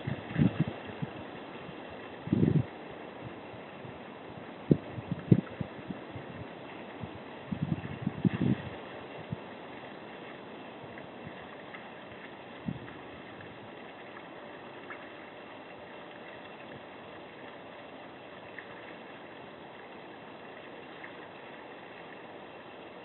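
A small waterfall splashes steadily into a pond.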